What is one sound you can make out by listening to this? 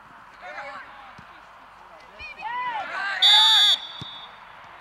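Men shout and cheer loudly outdoors.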